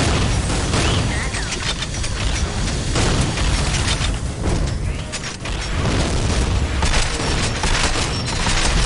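A gun fires rapid bursts with loud energy blasts.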